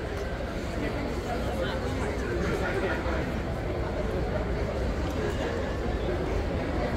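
A crowd of men and women chatters at a distance outdoors.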